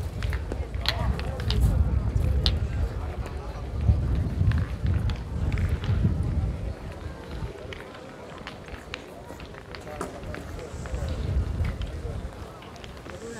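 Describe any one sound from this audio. People talk quietly in the distance outdoors.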